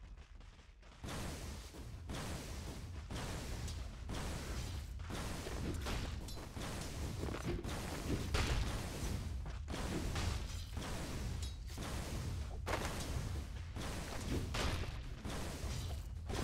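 Fighting sounds of clashing blows and spell blasts ring out in a video game.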